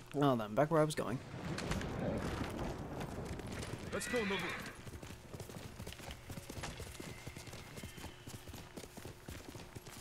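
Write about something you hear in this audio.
A horse gallops, hooves thudding on soft ground.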